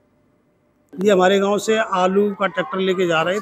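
A middle-aged man speaks calmly close to a microphone.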